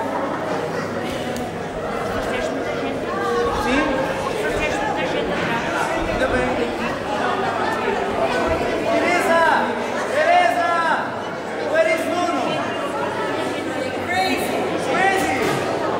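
A piano accordion plays.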